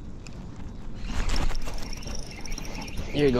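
A fishing line swishes through the air in a cast.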